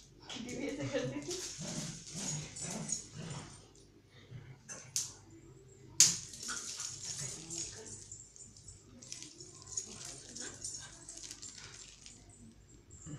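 A small dog's claws tap and scrabble on a hard floor.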